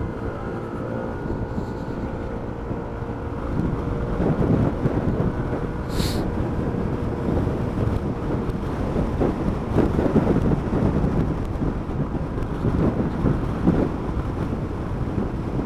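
A motorcycle engine hums steadily while riding along.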